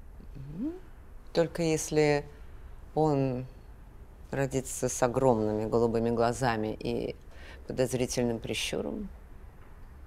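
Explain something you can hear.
A middle-aged woman speaks expressively, close by.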